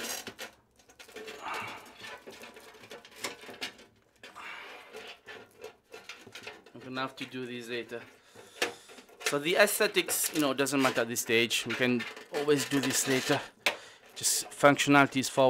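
Cables rustle and knock against a metal case.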